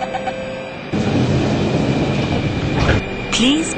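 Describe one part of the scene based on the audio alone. Sliding train doors close with a rumble.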